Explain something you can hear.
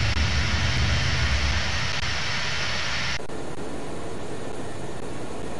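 Jet engines roar steadily, then suddenly turn into a muffled hum.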